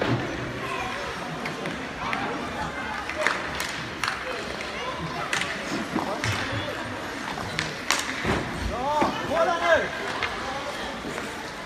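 Hockey sticks clack and skates scrape on ice in a large echoing rink.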